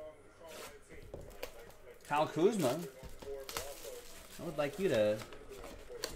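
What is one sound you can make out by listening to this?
Plastic wrap crinkles.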